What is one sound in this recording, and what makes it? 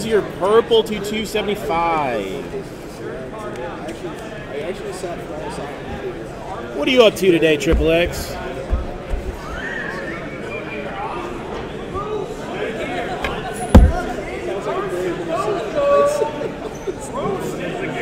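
A crowd murmurs in the background of a large hall.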